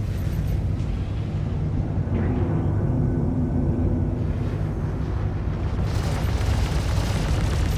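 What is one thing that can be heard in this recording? A ship's engines drone with a low, steady rumble.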